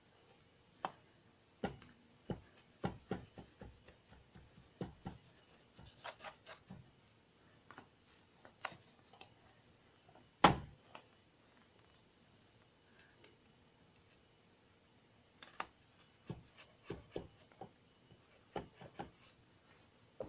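A blade taps and knocks against a toy.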